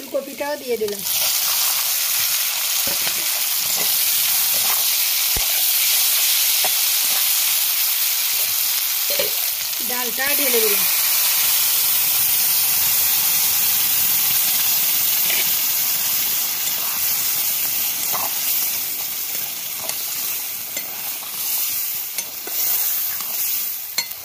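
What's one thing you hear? Food sizzles and crackles in hot oil in a pan.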